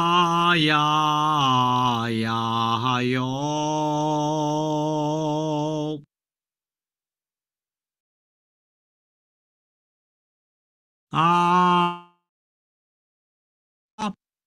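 A man chants long, drawn-out vowel sounds in a steady voice, close to a microphone.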